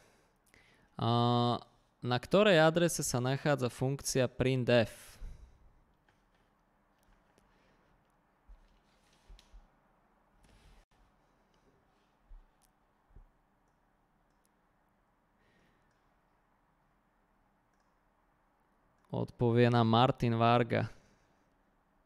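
A man speaks calmly into a close microphone, with pauses.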